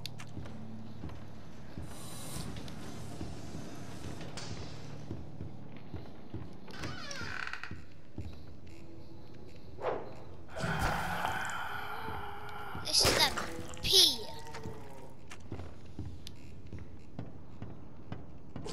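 Footsteps thud on creaky wooden floorboards.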